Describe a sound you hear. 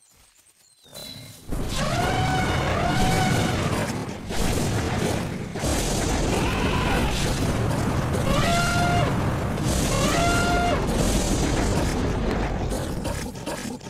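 Heavy blows land in a fierce animal fight.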